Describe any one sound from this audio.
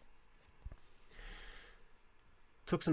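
Paper rustles and slides as it is moved by hand.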